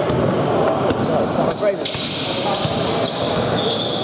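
A basketball bounces on the court as a player dribbles.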